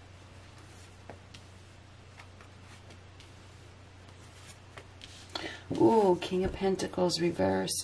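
Playing cards slide and tap softly on a cloth.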